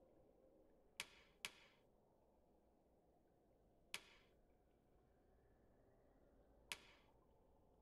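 Short menu clicks sound a few times.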